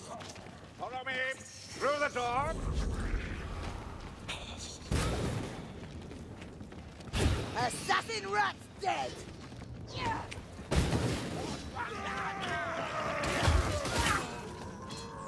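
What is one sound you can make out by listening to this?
Weapons strike and thud in a close fight.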